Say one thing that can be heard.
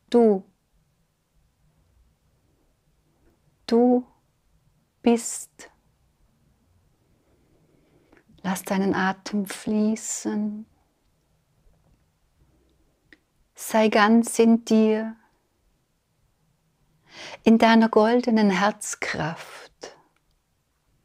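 A middle-aged woman speaks slowly and calmly into a close microphone, with long pauses.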